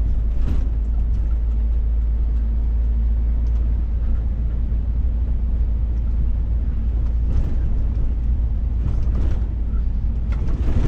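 A vehicle cab rattles and knocks over bumps in the road.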